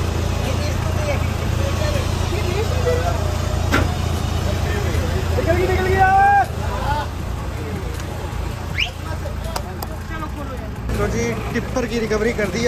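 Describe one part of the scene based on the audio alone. Men talk loudly nearby outdoors.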